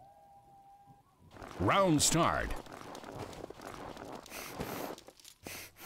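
Footsteps crunch over snowy ground.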